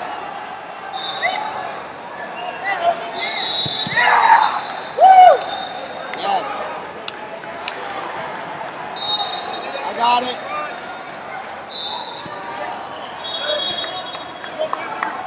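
Shoes squeak sharply on a mat.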